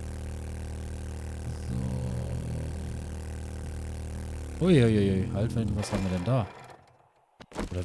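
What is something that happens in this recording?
A motorbike engine hums steadily, then revs up and down before cutting out.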